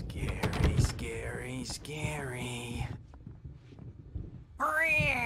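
A man speaks in a mocking, sing-song voice, heard close up.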